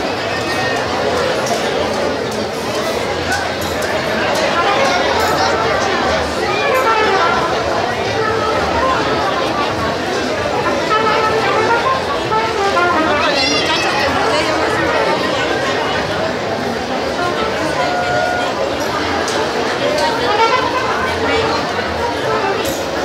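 Plates clink on a table.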